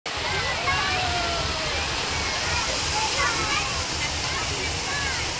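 Water splashes down steadily in a falling curtain.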